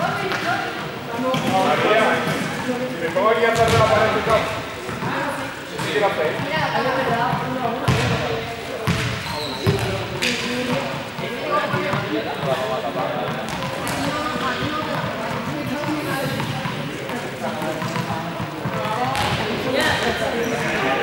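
Sneakers squeak and step on a hard court floor.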